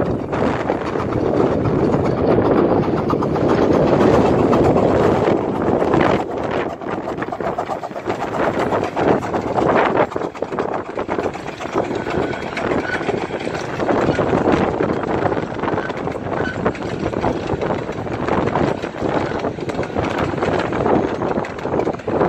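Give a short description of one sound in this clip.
Train wheels clatter and rumble over the rails.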